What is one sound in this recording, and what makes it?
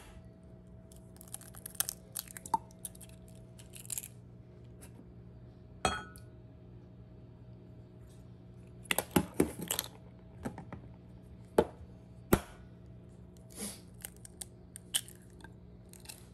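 Egg drips and splashes into a glass.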